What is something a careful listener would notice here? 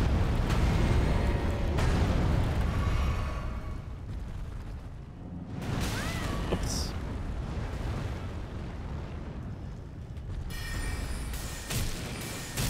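Heavy blows thud and clang in a game.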